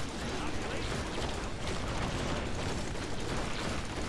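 Blades clash and slash in a fight.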